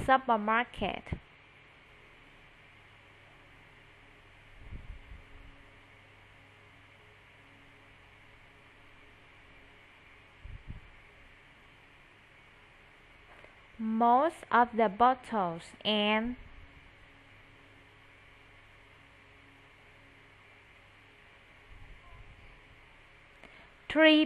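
A woman speaks clearly over an online call, in short bursts.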